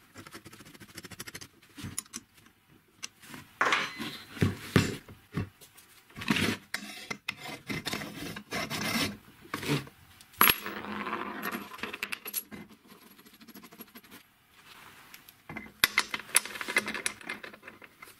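Metal parts clink and knock against a wooden workbench.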